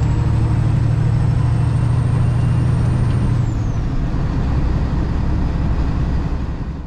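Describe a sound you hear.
A truck's diesel engine rumbles loudly from inside the cab, its pitch dropping partway through.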